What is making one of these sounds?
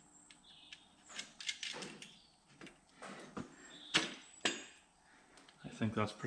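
Metal parts clink as an engine part is handled.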